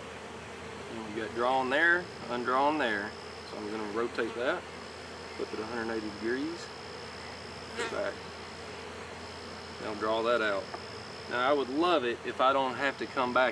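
An adult talks calmly nearby.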